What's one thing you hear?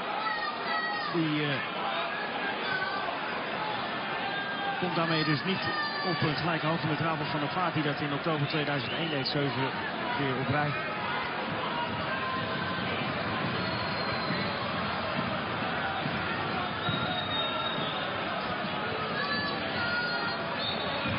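A large crowd murmurs and chants throughout a big open stadium.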